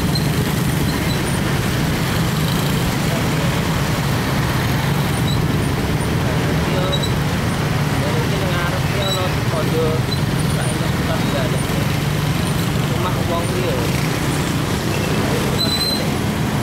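A motorcycle engine hums steadily up close.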